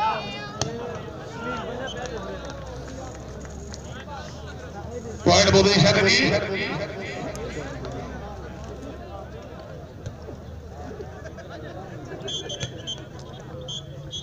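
A large outdoor crowd murmurs and chatters throughout.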